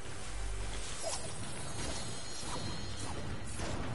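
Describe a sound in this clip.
A treasure chest opens with a bright shimmering chime.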